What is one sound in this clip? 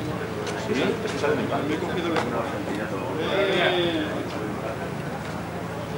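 Several men talk casually nearby, outdoors.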